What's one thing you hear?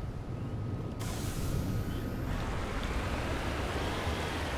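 Wheels splash and hiss through shallow water.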